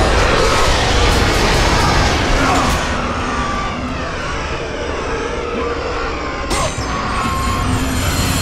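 Blows strike creatures with sharp hits.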